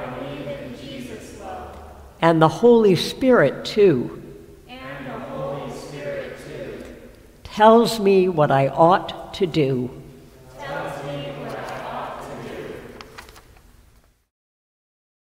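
A woman sings slowly in a large echoing hall.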